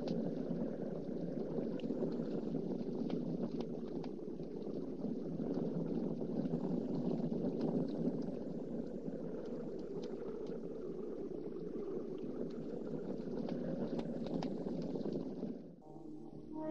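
A jeep engine rumbles steadily.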